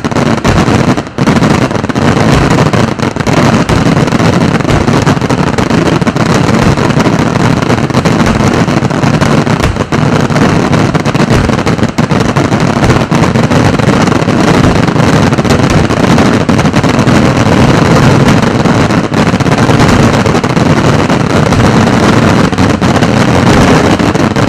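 Fireworks crackle and bang rapidly and loudly overhead without pause.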